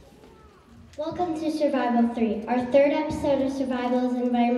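A second young girl sings into a microphone.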